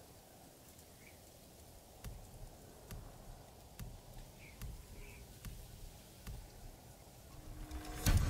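Soft interface clicks tick as menu options change.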